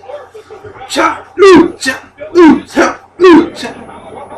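A young man claps his hands loudly.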